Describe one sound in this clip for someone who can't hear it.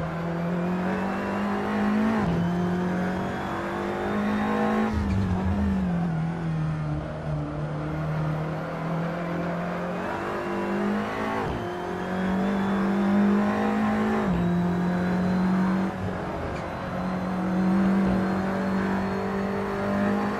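A race car engine roars steadily, its pitch rising and dropping with each gear change.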